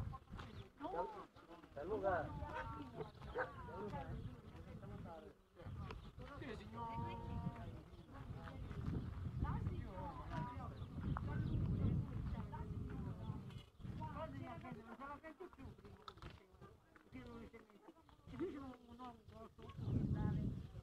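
Adults talk nearby outdoors.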